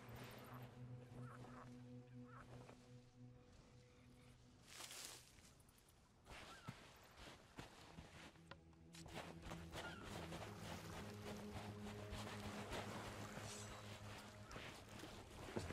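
Gentle waves lap at a sandy shore.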